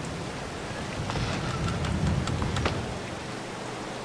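A door opens with a creak.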